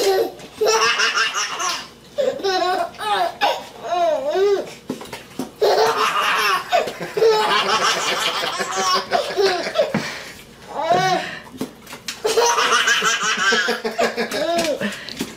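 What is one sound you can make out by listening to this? A baby laughs loudly in bursts of giggles close by.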